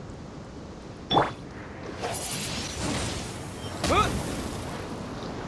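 A blade swooshes through the air.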